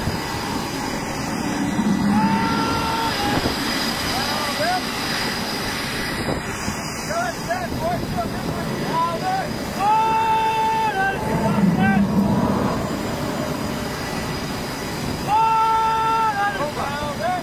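Jet engines roar steadily outdoors.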